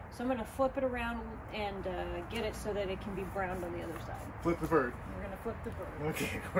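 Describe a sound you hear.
A woman talks calmly nearby outdoors.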